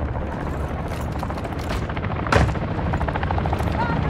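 A helicopter's rotor thumps overhead.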